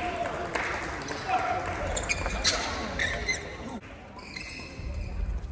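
Shuttlecocks are struck with sharp pops in a large echoing hall.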